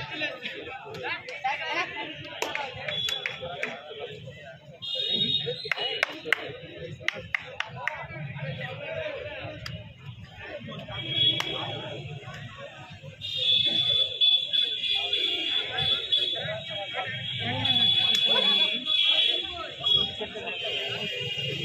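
A young man chants rapidly.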